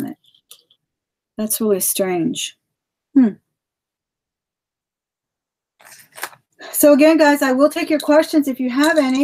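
A woman talks close to a microphone with animation.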